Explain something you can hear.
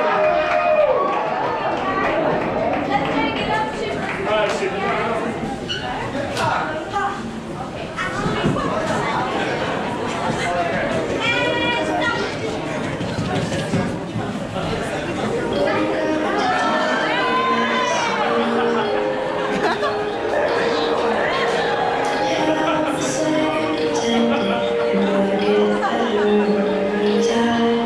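Music with a singing voice plays loudly through speakers in an echoing room.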